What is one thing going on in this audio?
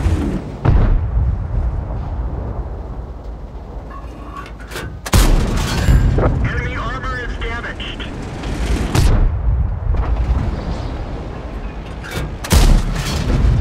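A tank cannon fires with loud, sharp booms.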